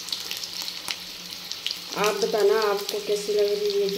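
A metal spatula scrapes against a pan.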